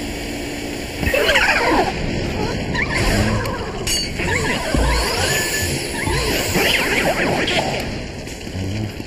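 A ghost shrieks with high, wavering cries.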